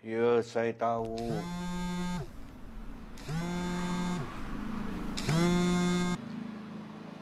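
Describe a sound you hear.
A mobile phone rings.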